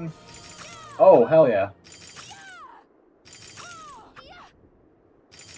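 A blade swishes with magical whooshing effects.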